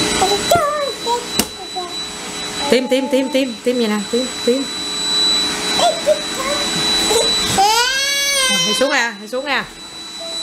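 A toddler laughs up close.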